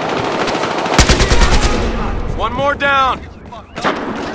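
An assault rifle fires in bursts.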